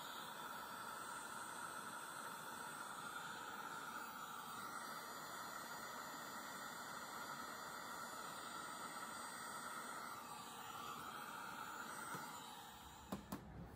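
A heat gun blows hot air with a steady whooshing hiss.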